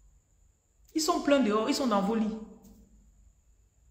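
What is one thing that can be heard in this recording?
A woman speaks briefly and calmly close to the microphone.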